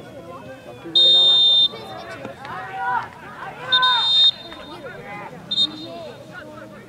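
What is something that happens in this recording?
A referee's whistle blows in short, sharp blasts.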